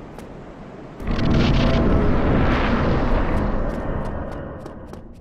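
A loud rushing whoosh swells and fades away.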